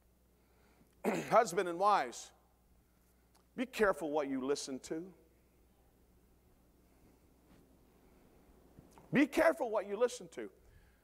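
A middle-aged man preaches with animation through a microphone in an echoing hall, pausing between phrases.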